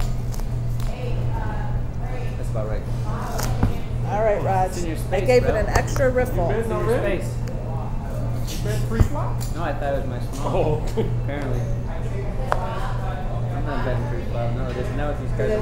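A man talks casually nearby.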